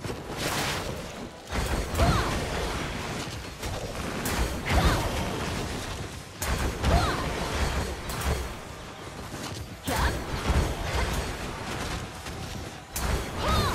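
Magic blasts and sword strikes crash and whoosh in repeated bursts.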